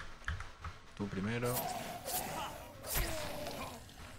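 A blade strikes flesh with a heavy thwack.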